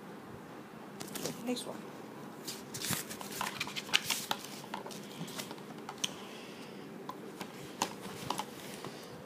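Book pages rustle and flip.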